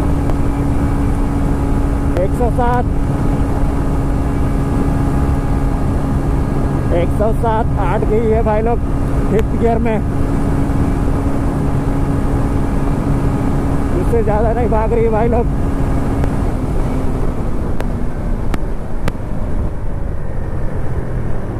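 A motorcycle engine drones steadily while riding.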